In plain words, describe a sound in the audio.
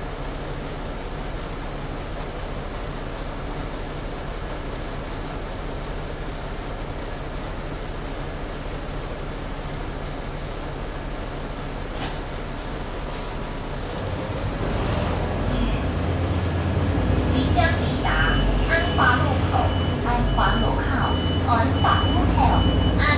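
A bus engine rumbles steadily and grows louder as the bus moves off.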